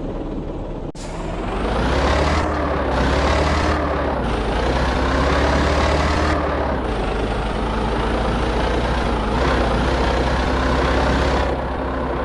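A heavy truck engine revs up and shifts through its gears as the truck speeds up.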